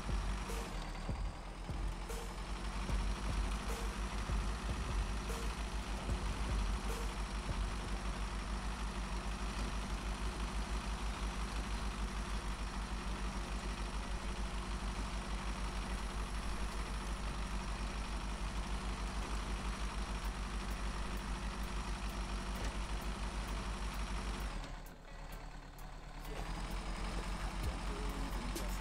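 Rocks clatter and crunch under the truck's tyres.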